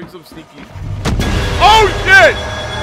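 A man screams loudly in fright.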